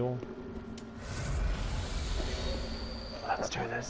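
A steady rushing whoosh swells up and holds.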